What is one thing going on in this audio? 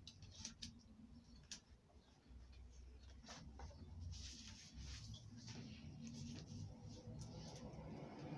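Paper clicks and taps against a hard surface.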